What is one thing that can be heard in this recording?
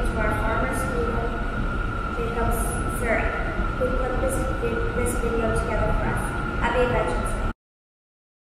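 A young girl reads aloud into a microphone in a large echoing hall.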